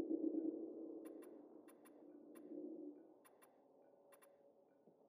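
Short soft clicks sound as a game menu selection moves.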